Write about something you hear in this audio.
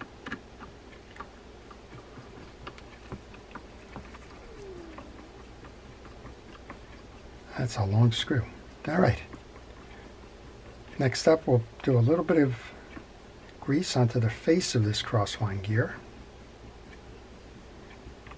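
Small metal parts click and tick as a fishing reel is handled.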